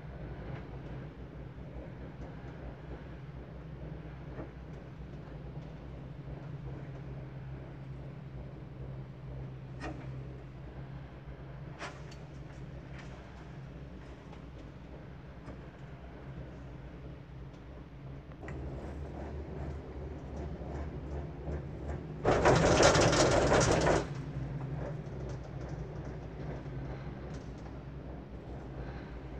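A gondola cabin hums and rumbles as it rides along the cable.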